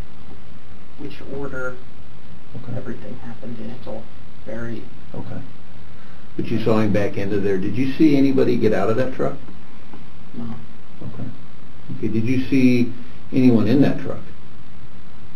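A man asks questions calmly, heard through a room microphone.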